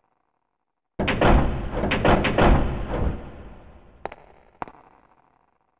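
A locked door handle rattles and clunks.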